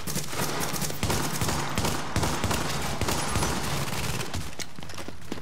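Rapid gunfire rattles in bursts.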